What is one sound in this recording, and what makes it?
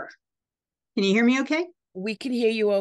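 An elderly woman speaks calmly over an online call.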